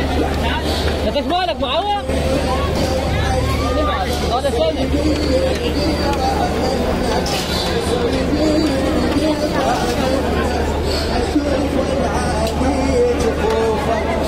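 A dense crowd of men and women chatters all around outdoors.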